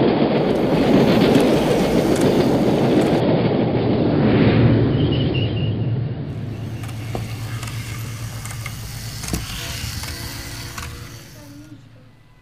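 A toy train rumbles and rattles along its track.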